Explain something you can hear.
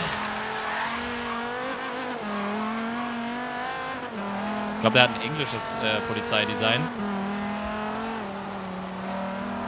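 Tyres screech as a car skids on a road.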